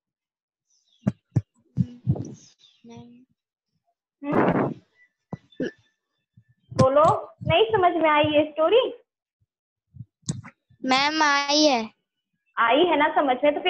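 A young woman speaks calmly and clearly, close to a small microphone, with pauses between phrases.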